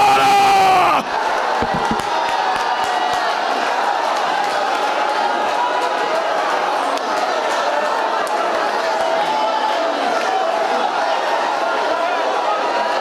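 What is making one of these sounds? A large crowd prays aloud and cries out together.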